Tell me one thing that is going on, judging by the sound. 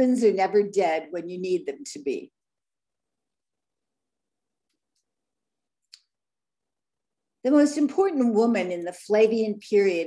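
An elderly woman speaks calmly over an online call, pausing between phrases.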